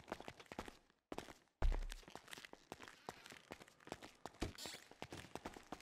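Footsteps tread across a floor indoors.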